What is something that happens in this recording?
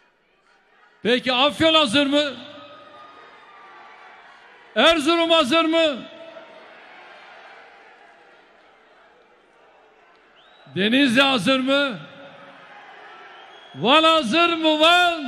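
A large crowd chants loudly in unison, in short bursts.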